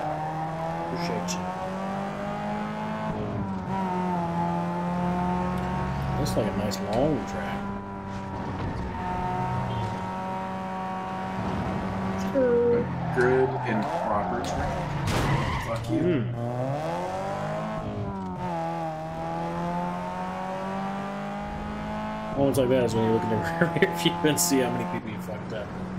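A racing car engine roars and revs up and down steadily.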